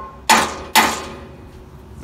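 A hammer strikes a metal frame with sharp, ringing clanks.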